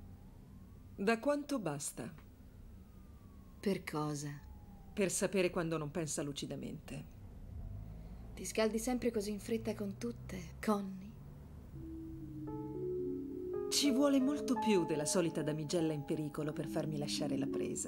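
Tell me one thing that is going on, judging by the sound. A woman speaks calmly and tensely, close by.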